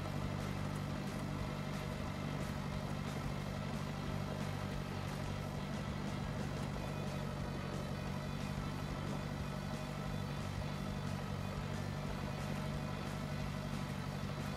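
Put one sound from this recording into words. A tractor engine rumbles steadily as it drives along.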